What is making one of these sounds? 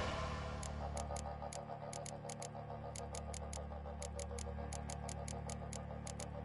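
Soft menu clicks tick quickly as a list is scrolled through.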